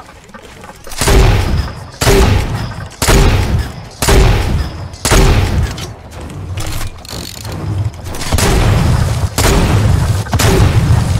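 Wooden walls and ramps clatter and thump as they are built quickly, over and over.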